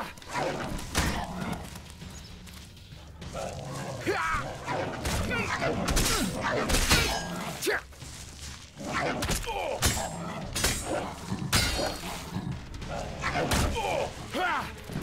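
Weapons strike with sharp thuds and clangs during a fight.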